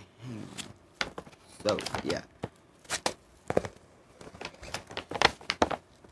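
Plastic packaging crinkles and rustles in gloved hands.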